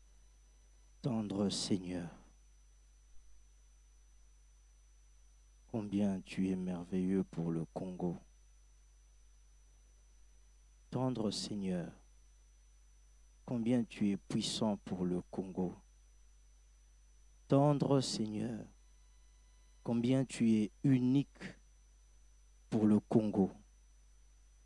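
A man speaks into a microphone in slow, emphatic bursts with pauses between them.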